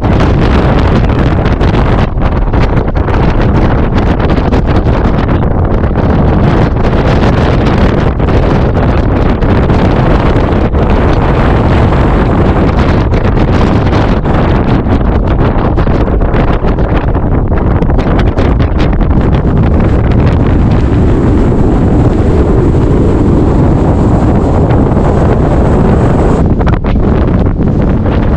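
Strong wind roars and buffets steadily outdoors.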